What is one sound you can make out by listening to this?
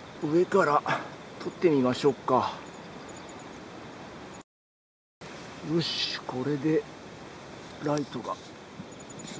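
A bird calls nearby in short, warbling bursts.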